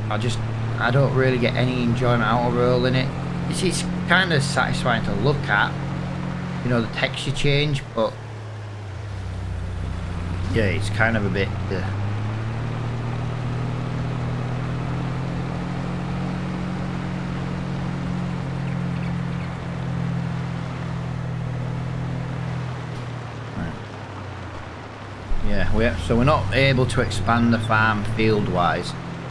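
A vehicle engine hums steadily as it drives along.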